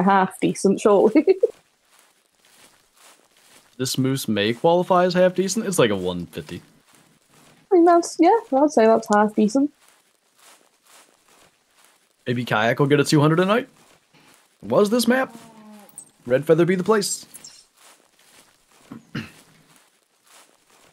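Footsteps rustle softly through undergrowth.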